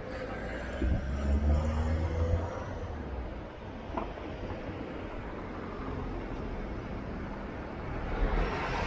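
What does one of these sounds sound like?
A car drives past on a street.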